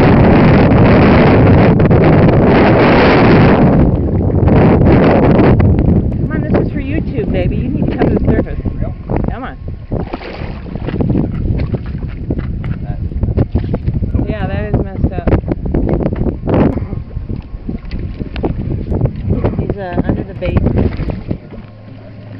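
Water rushes and splashes past a moving boat.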